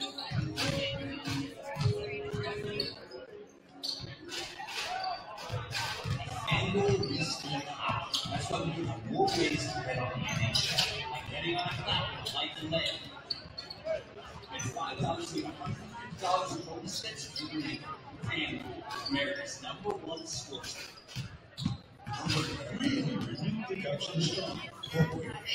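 A crowd murmurs in the stands.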